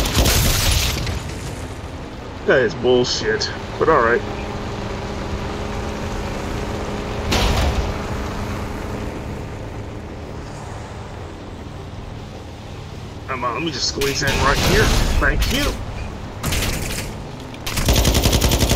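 A truck engine rumbles steadily while driving over rough ground.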